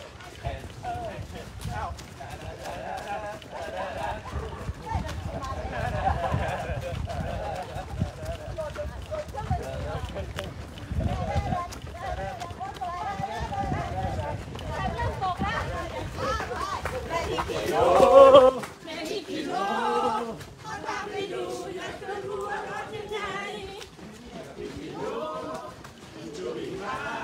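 Many running feet patter on pavement.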